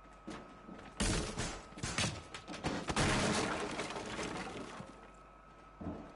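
Footsteps thud quickly on a hard floor.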